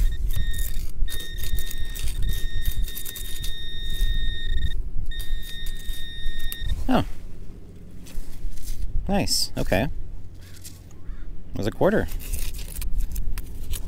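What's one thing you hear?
A small trowel scrapes and digs into gravelly sand.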